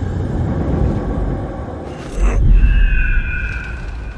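Wind rushes loudly past a falling figure.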